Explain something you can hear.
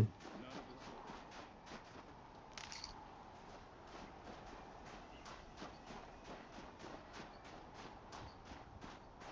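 Footsteps crunch quickly through deep snow.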